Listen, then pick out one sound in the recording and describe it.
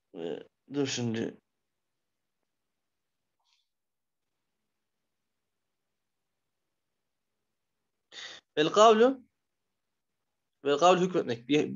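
A man speaks calmly into a microphone, in short phrases with long pauses.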